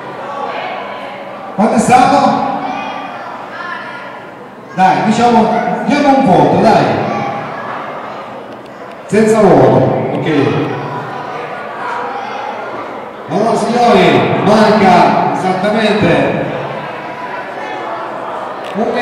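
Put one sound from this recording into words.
A middle-aged man shouts loudly through a microphone and loudspeakers, in bursts with pauses between.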